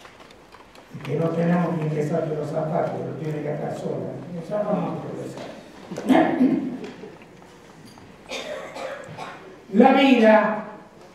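An elderly man reads aloud through a microphone in an echoing hall.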